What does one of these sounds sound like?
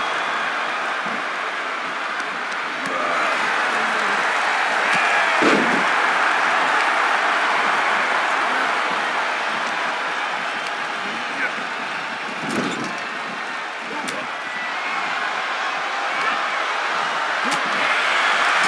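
A large crowd cheers and roars steadily throughout.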